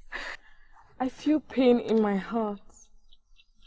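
A young woman sobs tearfully, close by.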